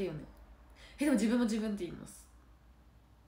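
A young woman speaks softly and close to the microphone.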